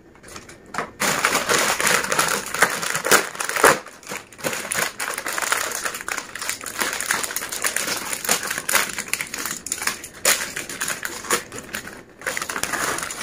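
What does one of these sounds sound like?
A plastic snack packet crinkles and rustles as it is torn open.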